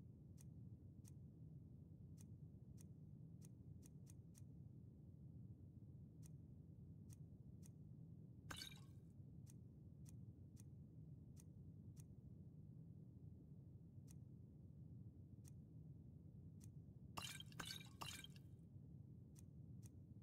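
Soft menu clicks tick again and again as a list scrolls.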